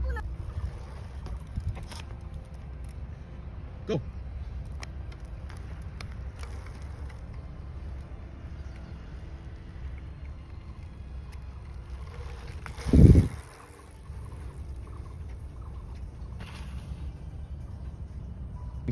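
Small bicycle tyres roll over asphalt.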